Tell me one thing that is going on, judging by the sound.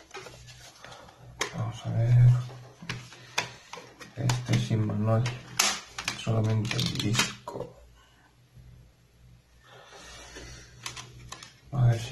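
A plastic case clicks and rattles as it opens and shuts.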